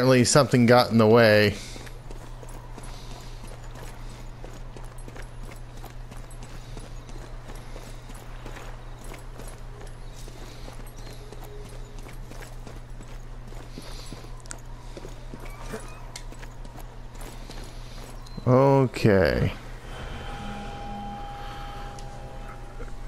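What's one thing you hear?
Footsteps fall on wooden planks and cobblestones.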